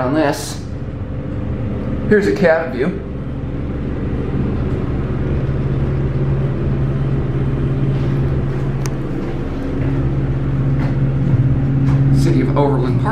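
An elevator motor hums steadily as the car moves.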